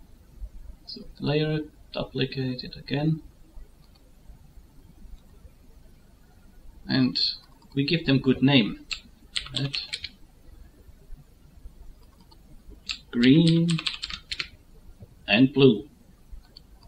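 A middle-aged man talks calmly and close into a microphone, with pauses.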